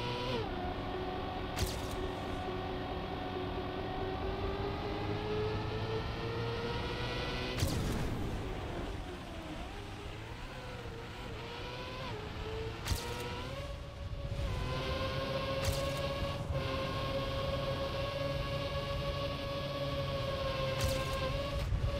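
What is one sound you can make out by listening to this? A racing car engine whines steadily, rising and dipping in pitch.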